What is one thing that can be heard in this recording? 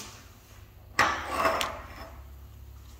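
Brass hose fittings clink and rattle as they are handled close by.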